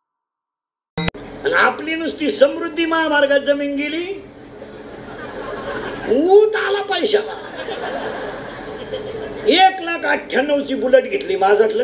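A middle-aged man sings loudly into a microphone.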